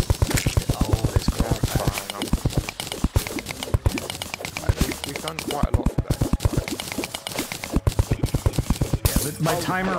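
A man talks casually into a microphone.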